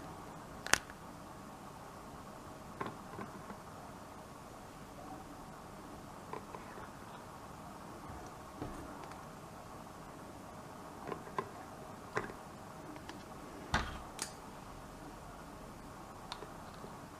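Plastic toy pieces click and tap against each other on a table.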